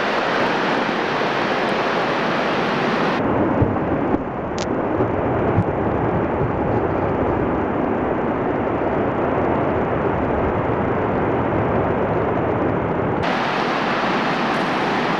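Ice breaks off a glacier and crashes into water with a deep rumbling roar.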